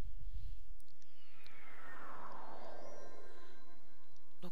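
A magical shimmering chime sweeps downward and fades.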